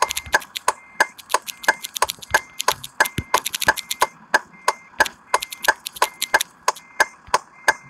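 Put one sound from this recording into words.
Keys click as text is typed on a phone touch keyboard.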